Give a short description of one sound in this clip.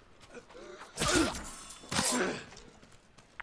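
A sword slashes through flesh with sharp, wet hits.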